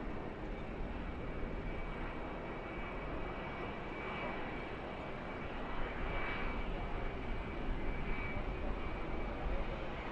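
Racing trucks roar past at high speed on an oval track.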